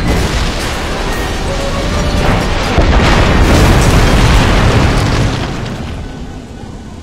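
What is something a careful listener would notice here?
An explosion roars and rumbles.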